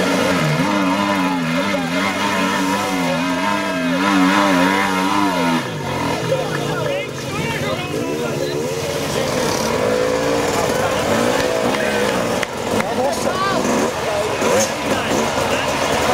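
A dirt bike engine revs hard and sputters close by.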